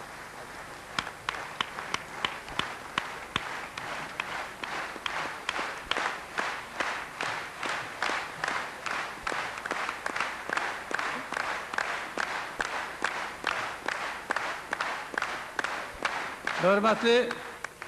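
A large audience claps along in a steady, quickening rhythm in an echoing hall.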